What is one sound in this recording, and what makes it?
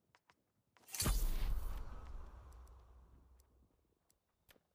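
A magical shimmering whoosh swells and slowly fades.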